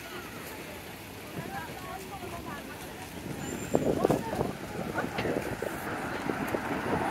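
Cars drive past on a nearby street.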